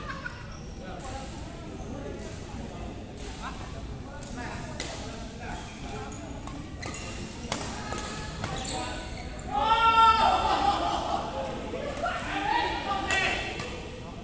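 Badminton rackets hit a shuttlecock in a large echoing hall.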